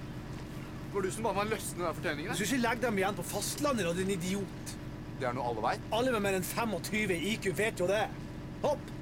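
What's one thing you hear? A middle-aged man calls out loudly from a boat.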